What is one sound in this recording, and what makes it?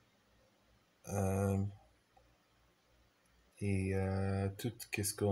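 A man sings long held notes close by.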